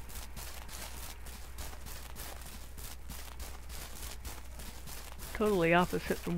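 Quick footsteps run through grass.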